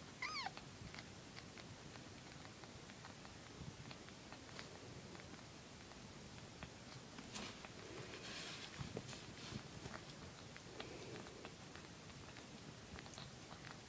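A cat licks its kittens with soft, wet clicks.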